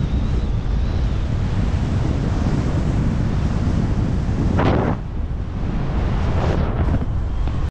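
Strong wind roars and buffets past during a fast freefall.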